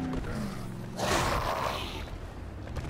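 A body thuds against a car.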